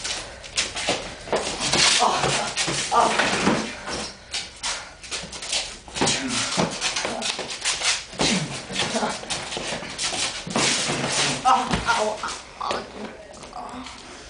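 Boxing gloves thump against each other in quick punches.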